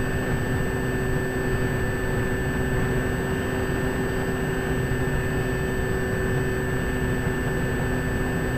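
Wind rushes and buffets loudly and steadily.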